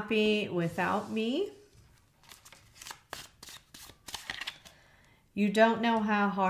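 Playing cards tap and slide on a table.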